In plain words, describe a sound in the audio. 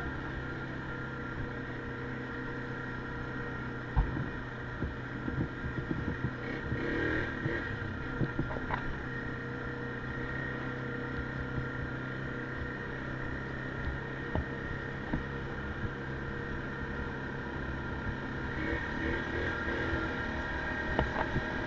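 A quad bike engine hums steadily up close.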